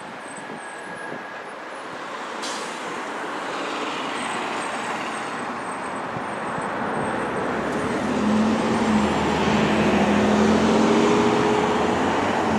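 A diesel school bus drives along the road, its engine droning.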